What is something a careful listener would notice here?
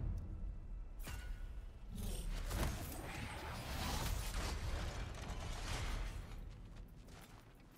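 A deep magical whoosh swirls and rumbles.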